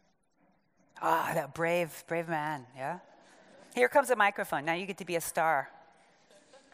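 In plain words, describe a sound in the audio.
A woman speaks with animation through a microphone in a large echoing hall.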